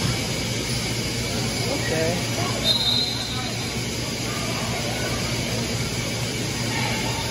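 Spectators talk and call out in the background.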